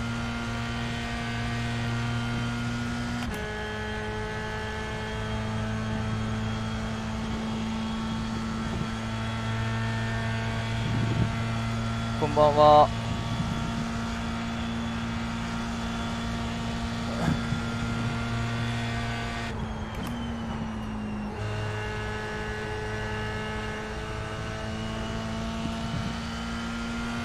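A racing car engine drones steadily, changing pitch with the gear shifts.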